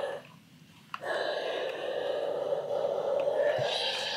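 A steam iron hisses steadily.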